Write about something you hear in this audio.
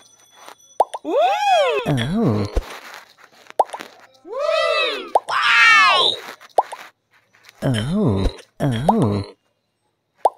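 Cartoonish tones swoop up and down in quick bursts.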